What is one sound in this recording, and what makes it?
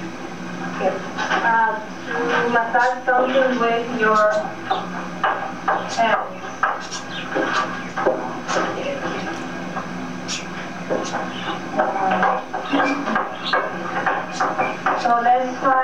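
A woman speaks calmly and clearly, as if lecturing.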